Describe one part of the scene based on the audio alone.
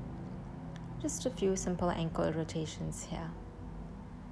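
A young girl speaks calmly and close by.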